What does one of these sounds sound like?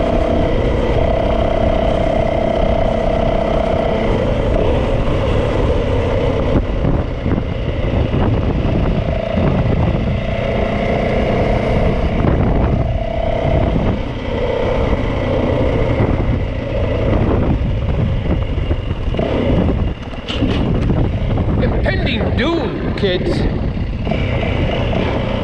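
A motorcycle engine hums steadily up close, changing pitch as it speeds up and slows.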